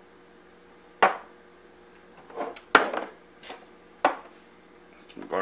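Small plastic spice jars knock and clatter against a countertop.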